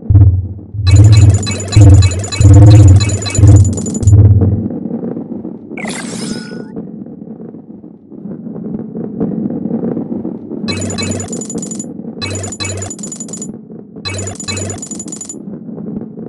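Coins chime in quick bursts as they are collected.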